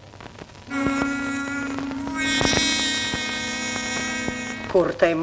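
A woman sings a long, steady held note.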